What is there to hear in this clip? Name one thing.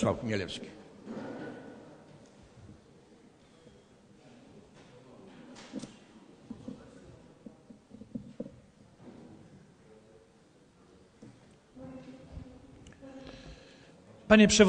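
Men murmur and talk quietly in a large echoing hall.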